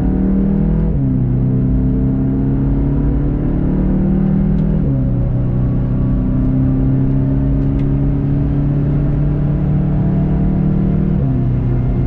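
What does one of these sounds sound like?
A car engine drops in pitch with each gear change.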